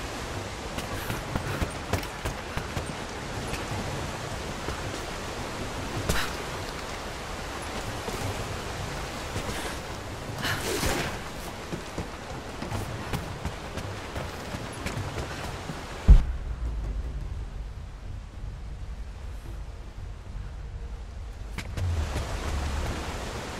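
Footsteps thump on wooden boards.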